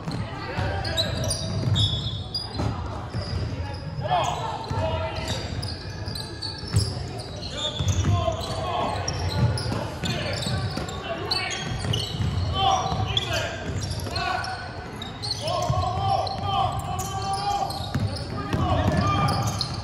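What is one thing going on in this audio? Young male players shout to each other in a large echoing hall.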